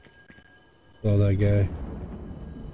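A rifle shot booms loudly.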